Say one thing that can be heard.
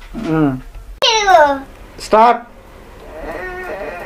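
A young woman speaks cheerfully and warmly.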